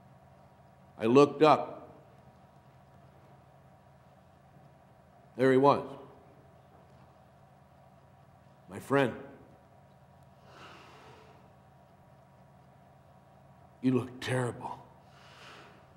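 An older man speaks slowly and calmly in short phrases, with long pauses, in a room with a slight echo.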